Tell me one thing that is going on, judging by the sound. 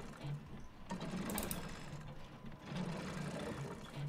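A metal roller shutter rattles as it rises.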